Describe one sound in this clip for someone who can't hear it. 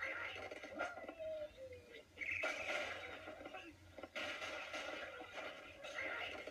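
Cartoonish game sound effects play through a small speaker.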